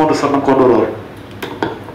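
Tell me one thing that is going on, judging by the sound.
A man speaks loudly and close to a microphone.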